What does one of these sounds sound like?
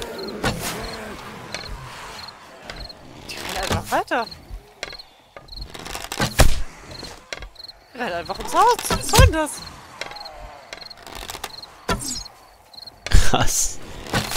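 A bowstring twangs as an arrow is loosed.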